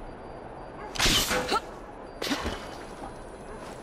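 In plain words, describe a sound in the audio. A grappling rope shoots out with a sharp whoosh.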